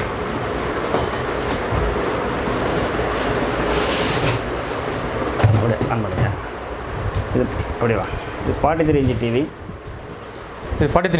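Cardboard rustles and scrapes as a large box is handled.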